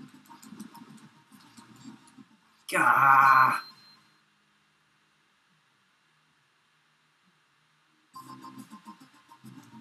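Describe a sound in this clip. Bouncy chiptune game music plays.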